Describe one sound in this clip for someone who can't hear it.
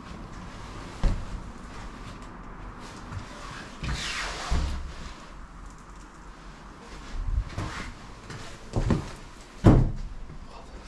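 Wooden doors bang and knock as they are pushed open.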